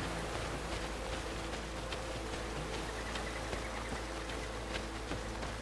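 A river flows and rushes steadily nearby.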